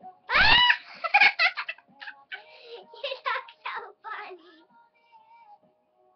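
A young girl laughs loudly and shrieks close by.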